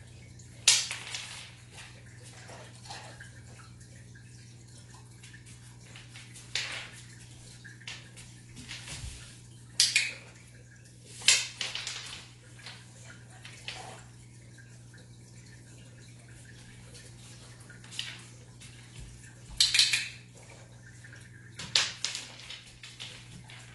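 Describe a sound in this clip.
A dog's claws click on a wooden floor as it walks about.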